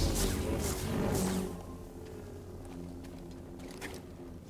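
Small fires crackle in the grass.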